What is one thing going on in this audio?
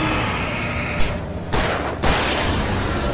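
Two sharp shots ring out.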